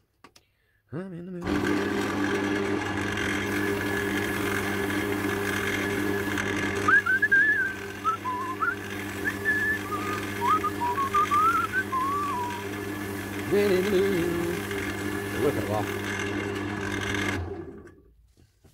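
A lathe motor hums steadily as the wood spins.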